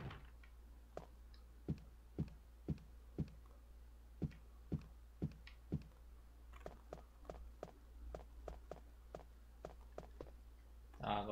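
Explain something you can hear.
Footsteps thud heavily on wooden stairs and floorboards at an even pace.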